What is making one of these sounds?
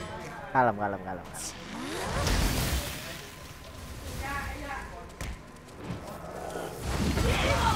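Fantasy battle sound effects clash, whoosh and thud.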